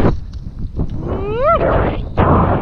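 A young man lets out a rising whoop close by.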